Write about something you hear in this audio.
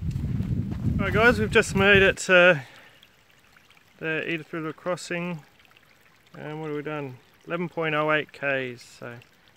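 A young man talks calmly, close to the microphone.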